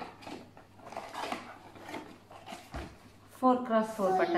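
Cardboard packaging rustles and crinkles as it is handled.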